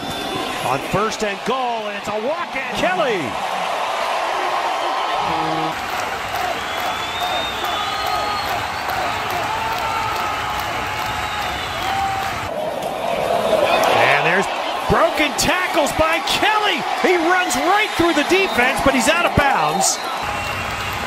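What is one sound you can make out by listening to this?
A crowd of adults cheers and shouts nearby outdoors.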